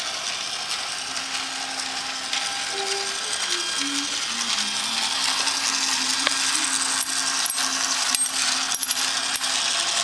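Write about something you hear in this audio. A toy plays a tinny electronic melody.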